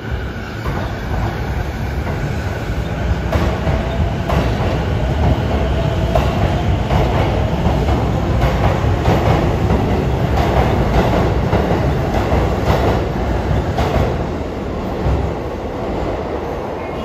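A train rumbles and whines as it pulls away from a platform.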